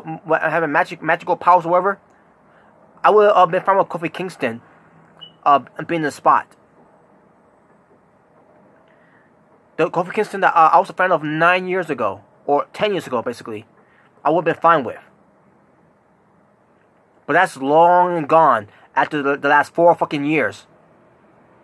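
A young man talks calmly and close to the microphone, in short bursts with pauses.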